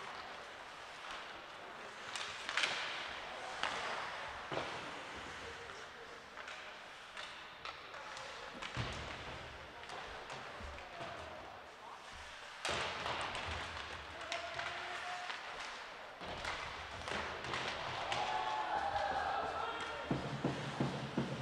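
Spectators cheer and shout in a large echoing rink.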